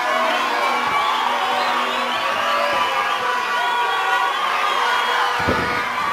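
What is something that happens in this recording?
A crowd cheers and shouts loudly in a large hall.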